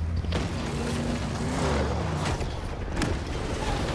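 A truck engine rumbles slowly.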